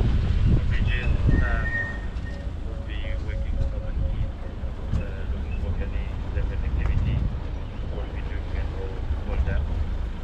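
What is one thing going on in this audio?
Tall grass and branches brush against the side of a vehicle.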